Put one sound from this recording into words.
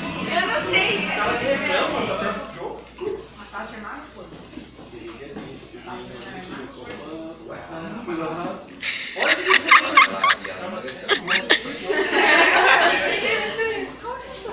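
A young woman talks and laughs with animation nearby.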